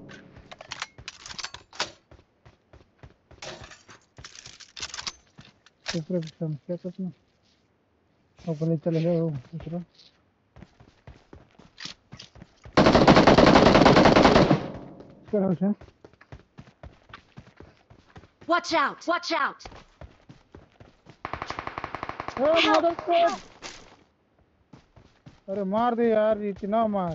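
Footsteps patter quickly on dirt and grass.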